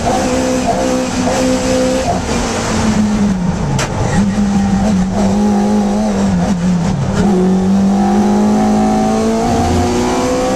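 The small four-cylinder engine of a racing Hillman Imp revs hard, heard from inside the car.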